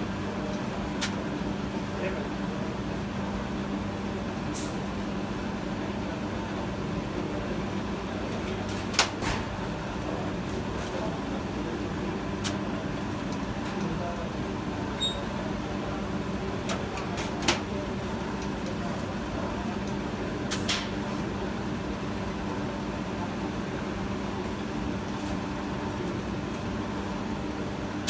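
Dough slaps and thuds softly onto a padded cushion.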